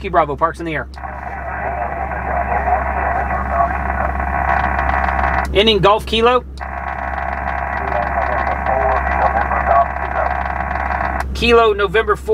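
A voice answers through a crackly radio loudspeaker.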